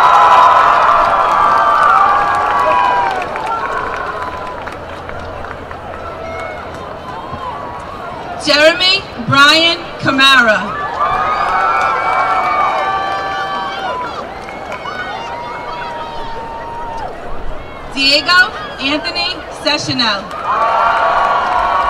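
A large outdoor crowd cheers and whistles.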